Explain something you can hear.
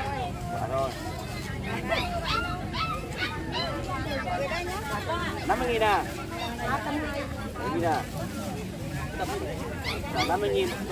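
Several women chatter with animation close by.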